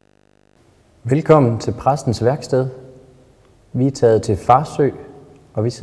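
A young man speaks calmly and closely into a microphone.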